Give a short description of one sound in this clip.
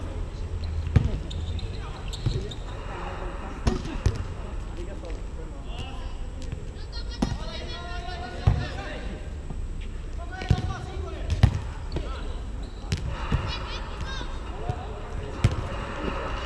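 A volleyball is struck with dull thuds.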